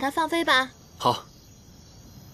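A young man answers briefly in a calm voice.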